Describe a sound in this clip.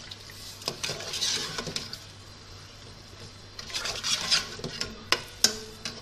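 A spoon stirs and scrapes inside a metal pot.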